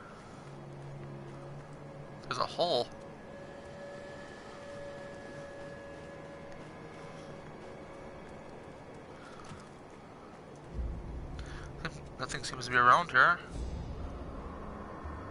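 Footsteps crunch on snow and rock.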